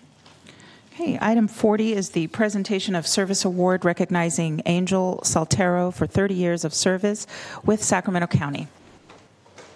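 A woman speaks calmly into a microphone in a large room.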